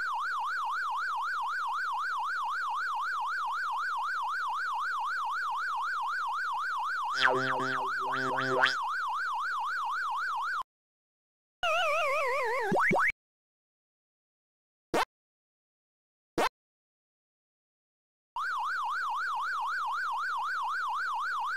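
A game's siren-like warble wails steadily.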